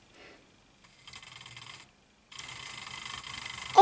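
A toy train motor whirs as the engine rolls along the track.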